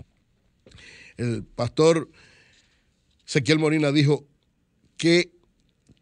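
A middle-aged man speaks emphatically into a close microphone.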